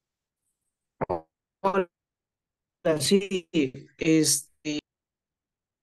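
A woman speaks briefly over an online call.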